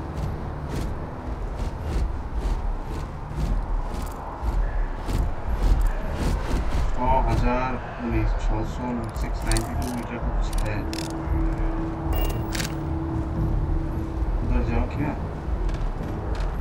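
Heavy boots thud quickly on hard ground.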